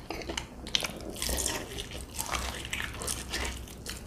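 A man bites into crispy fried chicken up close.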